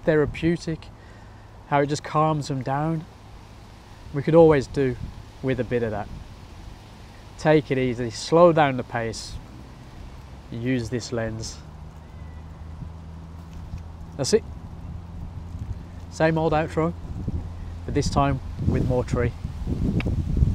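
A man talks calmly and close to a microphone, in short phrases with pauses.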